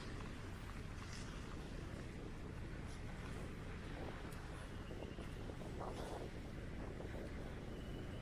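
Wind blows steadily and rumbles outdoors.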